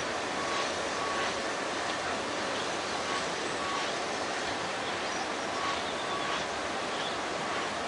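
A steam locomotive chuffs rhythmically as it pulls forward.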